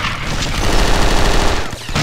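An explosion roars.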